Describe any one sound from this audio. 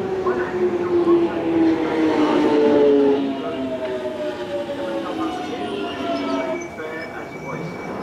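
An underground deep-tube train's inverter motors whine, falling in pitch as the train brakes to a stop.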